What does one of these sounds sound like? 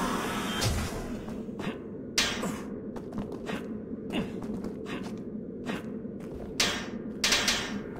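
Footsteps clank steadily on a metal floor.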